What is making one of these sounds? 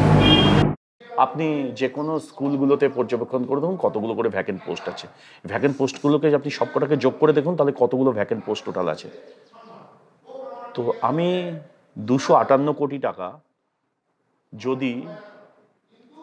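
A man speaks calmly and with emphasis, close to a microphone.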